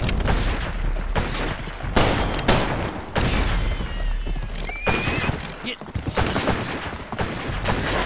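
A horse's hooves clop on the ground at a gallop.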